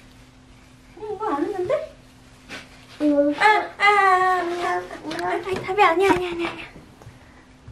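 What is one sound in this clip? A toddler babbles and whines.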